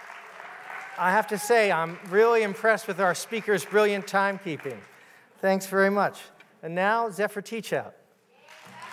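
A man speaks calmly through a microphone in a large hall.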